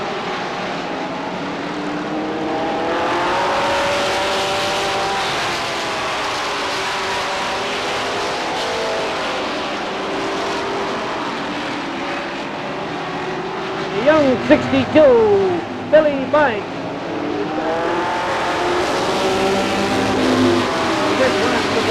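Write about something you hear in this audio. Race car engines roar loudly, rising and falling as the cars speed around a track.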